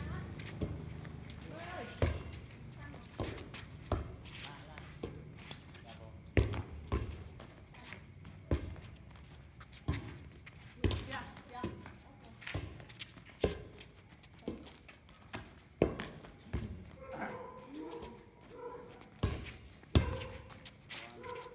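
A volleyball is struck with sharp slaps again and again.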